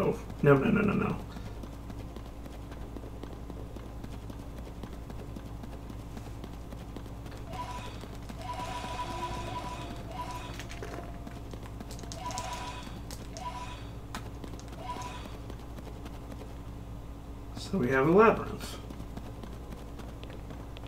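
Footsteps patter softly on the ground.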